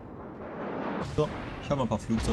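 Shells burst with booms in the distance.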